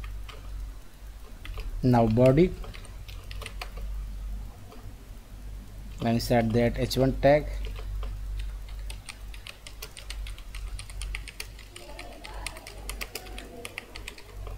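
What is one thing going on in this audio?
Keys clatter on a keyboard in quick bursts of typing.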